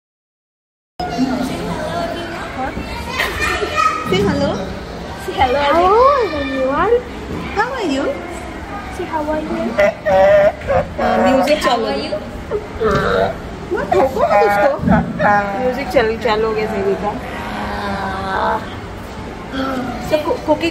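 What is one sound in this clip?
A young boy talks and laughs close by.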